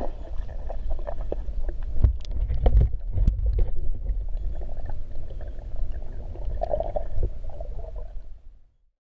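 Water swirls and bubbles in a muffled underwater rush.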